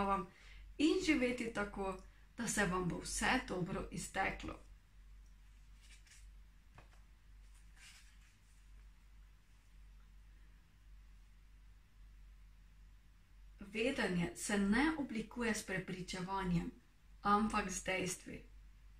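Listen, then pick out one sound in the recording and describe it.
A young woman reads aloud calmly, close to a microphone.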